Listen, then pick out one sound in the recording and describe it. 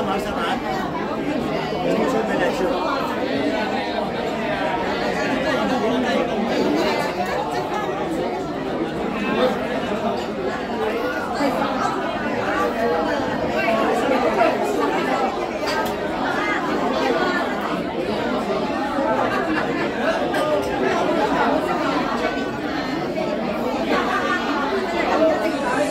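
A woman speaks into a microphone, heard through loudspeakers in a large room.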